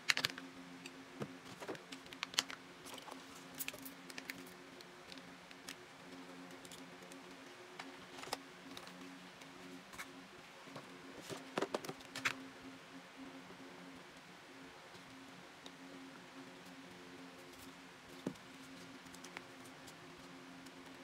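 Plastic items clatter and tap as they are handled and set down on a table.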